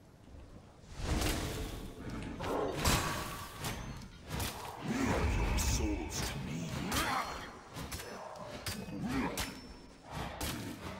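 Weapons clash and magic blasts crackle in a game fight.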